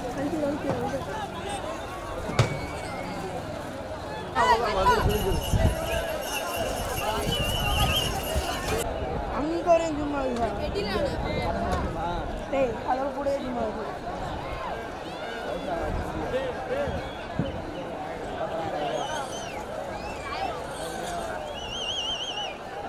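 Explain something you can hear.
A large outdoor crowd of men shouts and cheers.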